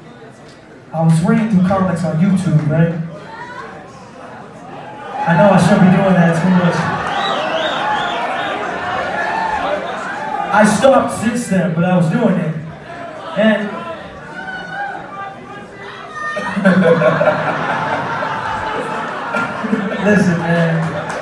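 A man raps into a microphone over loud amplified music in a large hall.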